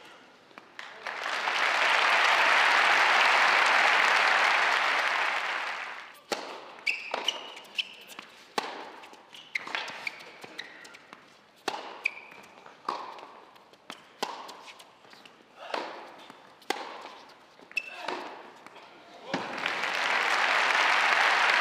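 A crowd applauds and cheers in a large hall.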